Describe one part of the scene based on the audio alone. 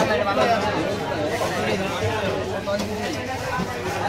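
Ice crunches as fish are pushed and lifted from it.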